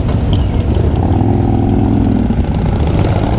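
Another motorcycle rides past with a humming engine.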